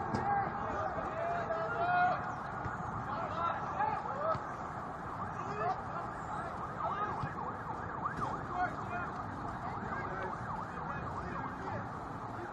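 Young players shout faintly across an open field outdoors.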